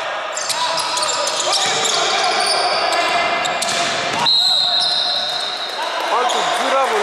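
Sneakers squeak sharply on a hardwood court in a large echoing hall.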